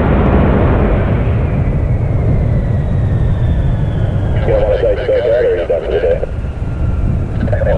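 A jet engine roars loudly and steadily close by.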